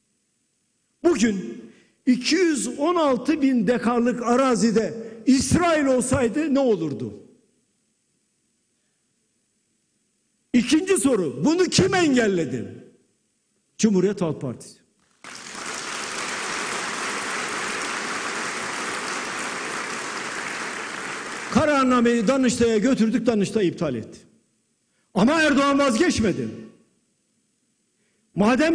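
An elderly man speaks forcefully into a microphone in a large hall.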